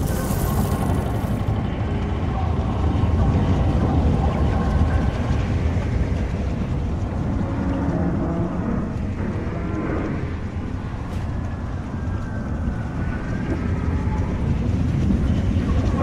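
Electricity crackles and fizzes.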